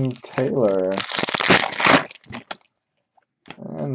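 A plastic wrapper crinkles between fingers.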